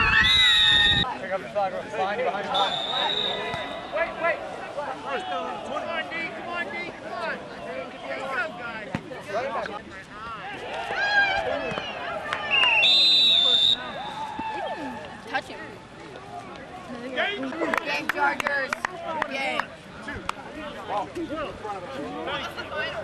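Several young men shout and call out to each other outdoors.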